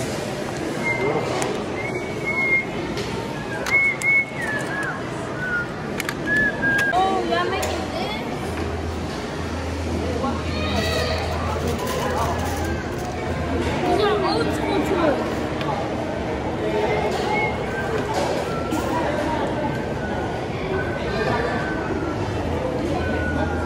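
Children's voices murmur and chatter in a busy room.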